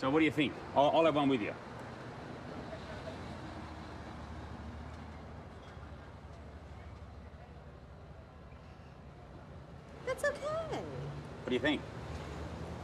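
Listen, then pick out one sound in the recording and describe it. A man asks questions close by.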